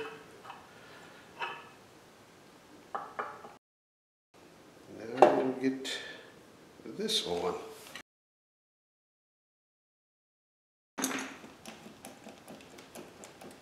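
Metal tools clink against a metal frame.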